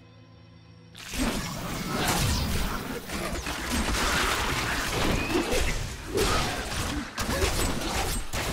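Weapons slash and strike in a noisy fight.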